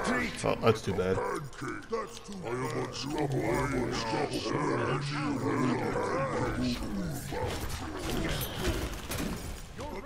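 Magic blasts crackle and hit during a fight.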